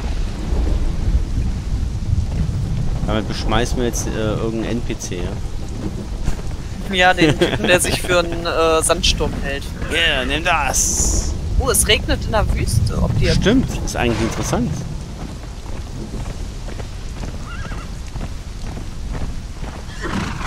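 Horses' hooves thud as they gallop over sand.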